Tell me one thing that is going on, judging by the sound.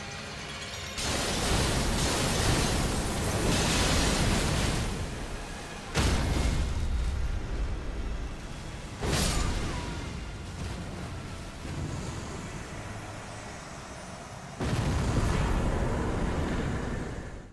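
Loud magical blasts roar and crash.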